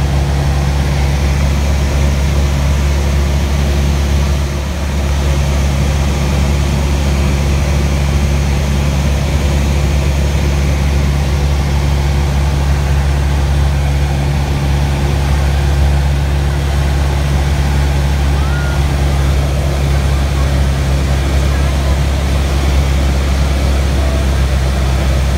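A small plane's propeller engine drones loudly and steadily from inside the cabin.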